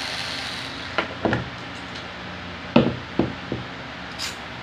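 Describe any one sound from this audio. Metal motor parts knock and clink in a man's hands.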